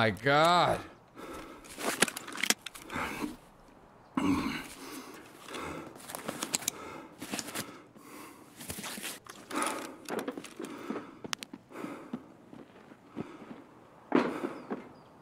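A young man talks calmly and close into a microphone.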